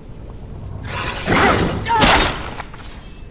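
A hound snarls and growls.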